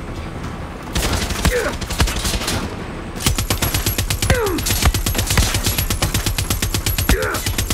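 A heavy machine gun fires rapid bursts close by.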